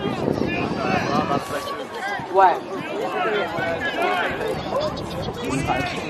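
A crowd of boys chatter and shout outdoors.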